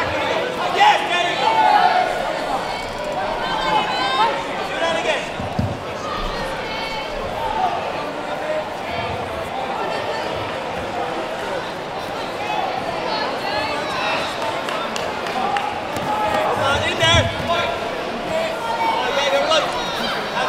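Gloved punches and kicks thud against padding.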